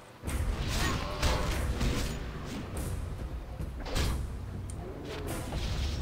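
Weapons clash and thud in a brief fight.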